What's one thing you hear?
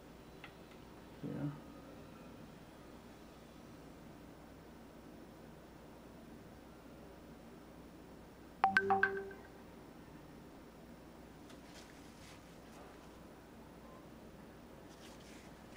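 A paintbrush brushes softly against canvas.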